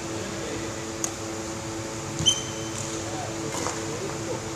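A badminton racket strikes a shuttlecock in a large echoing hall.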